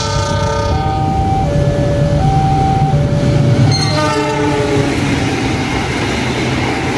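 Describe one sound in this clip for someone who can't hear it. A passing train rumbles and clatters over the rails.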